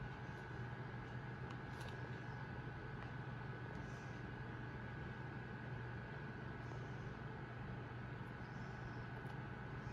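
A plastic DVD case is handled and turned in a hand.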